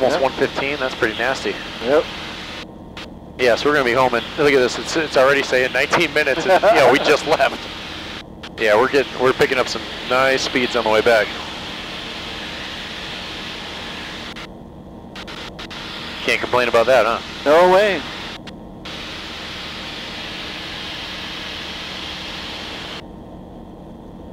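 A small plane's engine drones steadily inside the cabin.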